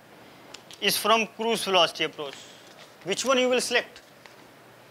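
A young man speaks calmly through a microphone, lecturing.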